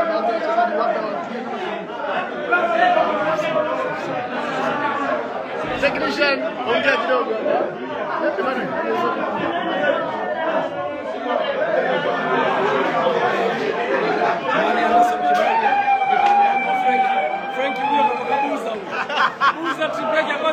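Several men sing and shout loudly together in an echoing room.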